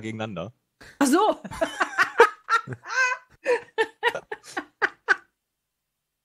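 A young woman laughs heartily through an online call.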